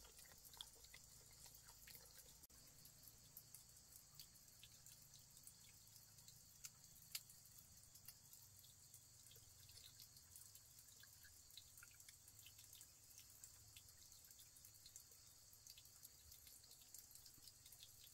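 A wood fire crackles softly nearby.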